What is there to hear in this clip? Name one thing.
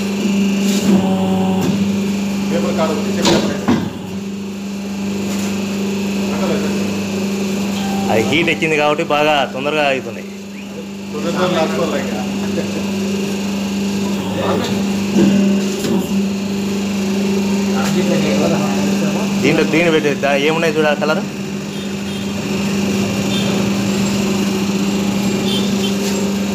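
A machine hums steadily with a low drone.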